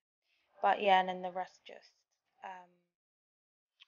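A young woman speaks softly and close to the microphone.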